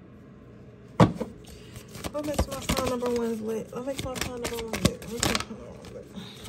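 Playing cards riffle and slap together in a hand.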